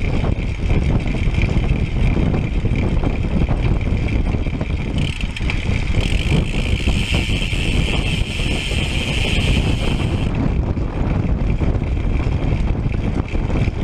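Wind buffets the microphone of a moving bicycle, roaring steadily.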